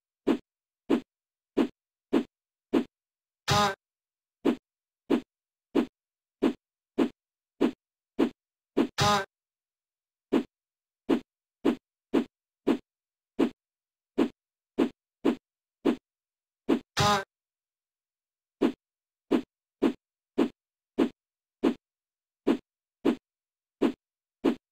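A video game plays a short flapping blip again and again.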